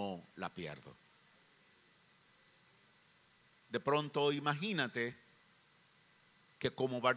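A middle-aged man speaks with animation into a microphone, with pauses between phrases.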